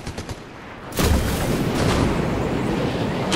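Wind rushes loudly past a glider in flight.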